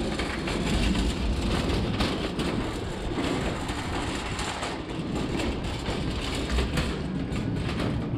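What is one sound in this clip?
Bottles clink together in a trolley basket.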